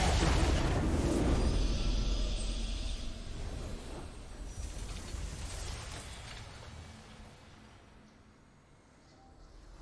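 A triumphant fanfare swells and slowly fades away.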